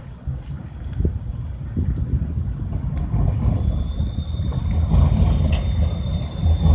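A tram approaches along rails.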